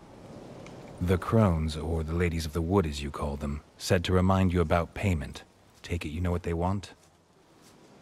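A man speaks calmly in a low, gravelly voice.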